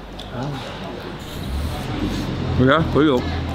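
A young man chews and slurps food up close.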